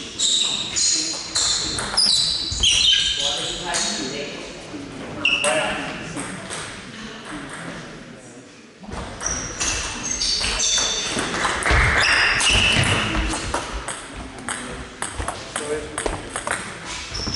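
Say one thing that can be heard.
Shoes squeak on a hall floor.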